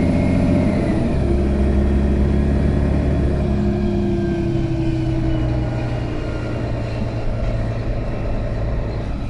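A bus engine hums and whines as the bus drives along.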